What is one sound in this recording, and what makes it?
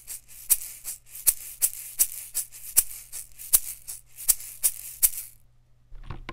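An egg shaker rattles in quick rhythmic shakes close up.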